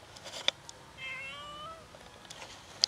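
A cat meows nearby.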